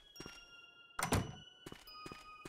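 A door opens and shuts.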